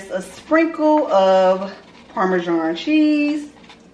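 Dry breadcrumbs are shaken into a bowl.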